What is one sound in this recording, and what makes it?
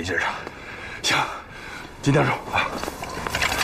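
An elderly man speaks briefly.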